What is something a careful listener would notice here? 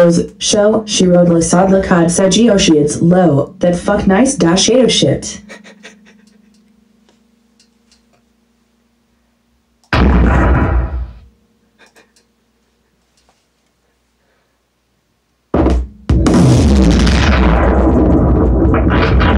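A subwoofer plays loud music with a deep, booming bass, stopping and starting again.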